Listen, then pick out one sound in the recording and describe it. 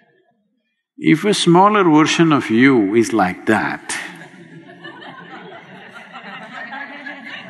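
An elderly man speaks expressively into a microphone.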